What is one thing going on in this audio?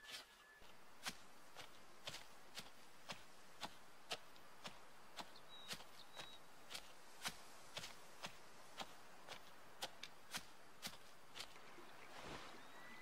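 A deer's hooves step steadily through grass.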